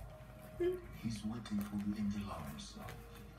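A dog growls playfully.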